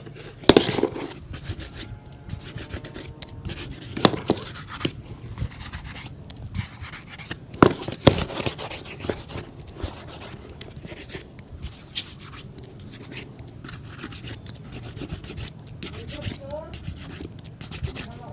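A cloth rubs briskly over a leather shoe.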